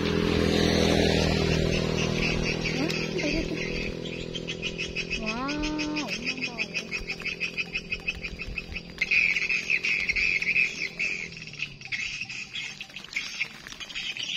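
Small animals rustle and scratch inside a wire cage.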